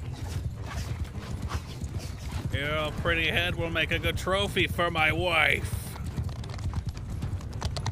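Horses gallop over grass.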